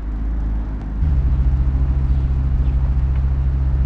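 A motorcycle engine runs with a steady low rumble.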